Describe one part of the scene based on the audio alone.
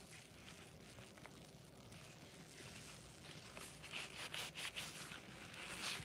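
A dry sponge is squeezed and rubbed, creaking and crackling softly.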